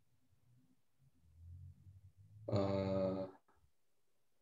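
A young man speaks briefly over an online call.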